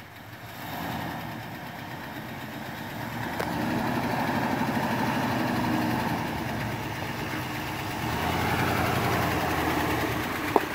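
Tyres crunch over rocks and gravel.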